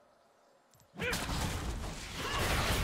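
Magic spell effects whoosh and crackle in a fight.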